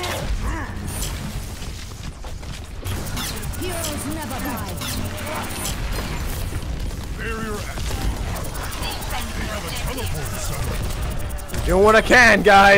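An electric beam weapon crackles and buzzes in bursts.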